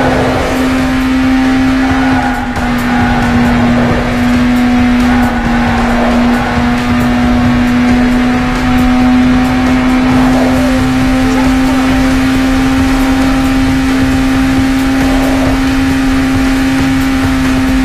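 A game car engine roars steadily at high speed.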